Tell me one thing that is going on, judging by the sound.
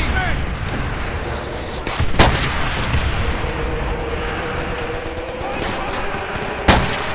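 Gunfire and battle noise rumble steadily in the background.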